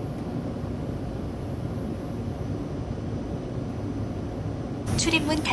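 A train car hums with a low, steady rumble.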